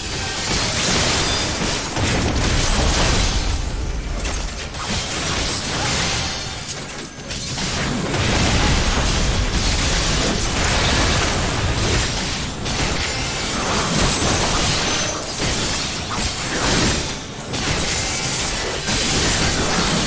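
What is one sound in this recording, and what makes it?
Magic spells burst and crackle in a game battle.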